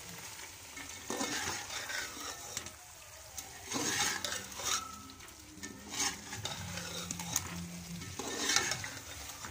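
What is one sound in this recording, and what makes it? A metal spoon scrapes and clatters against a metal pot.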